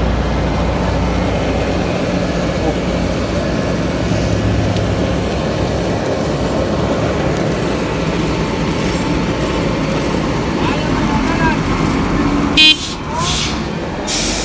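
A paving machine's diesel engine rumbles steadily close by.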